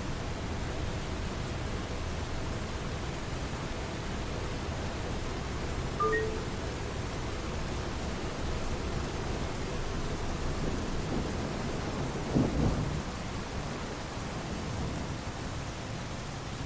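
An electric tram rolls along rails with a low rumble.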